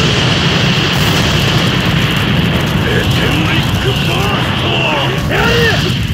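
Pillars of fire roar.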